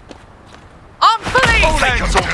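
A door bursts open with a loud bang.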